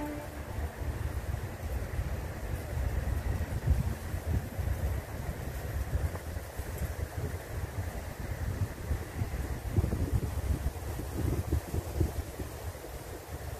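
Wind blusters outdoors, rustling tall dry grass.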